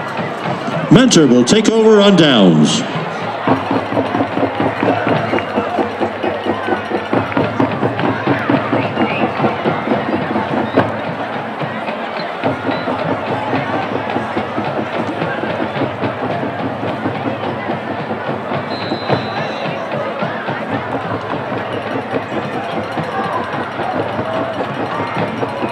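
A large outdoor crowd chatters and cheers steadily.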